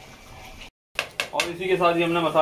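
A spoon scrapes and clinks against a pan.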